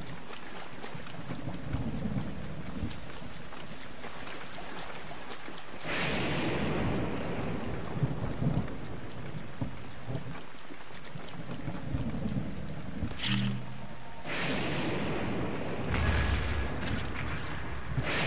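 Rain patters steadily on the ground.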